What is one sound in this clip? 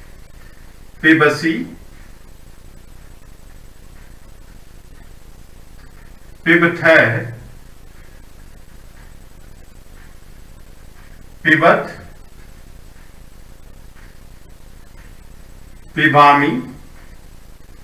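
A man speaks briefly and calmly in short phrases close by.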